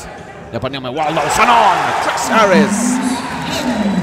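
Fans shout and applaud loudly.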